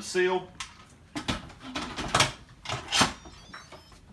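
A metal pot lid clanks and clicks into place.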